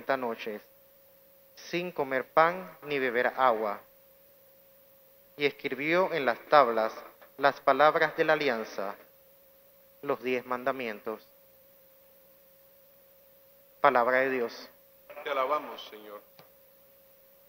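A man reads aloud calmly through a microphone in an echoing hall.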